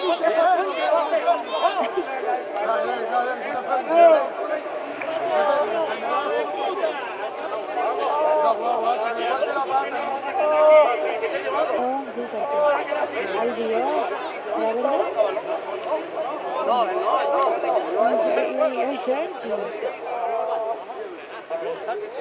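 Young men shout and call to each other across an outdoor field.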